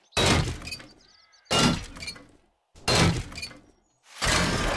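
A heavy metal wrench bangs hard against metal.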